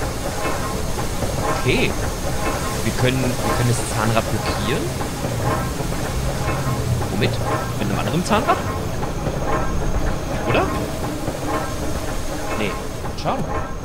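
A middle-aged man talks animatedly, close to a microphone.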